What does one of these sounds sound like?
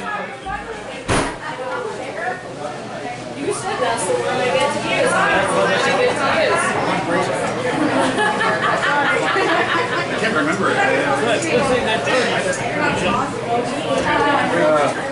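A drummer hits cymbals and drums.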